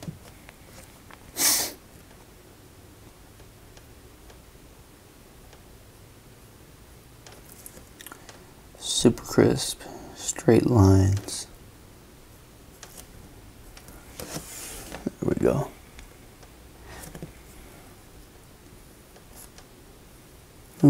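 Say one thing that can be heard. A felt-tip marker taps and scratches softly on paper.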